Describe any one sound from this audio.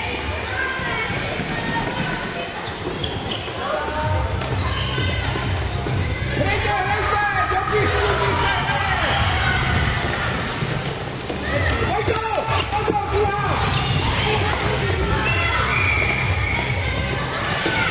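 Plastic sticks clack against a ball and each other.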